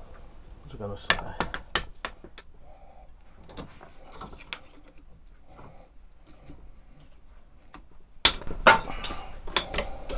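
A small hammer taps sharply on metal.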